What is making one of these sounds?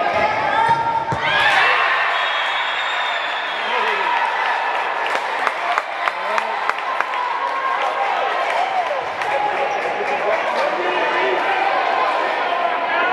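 Young women and girls shout and call out across a large echoing hall.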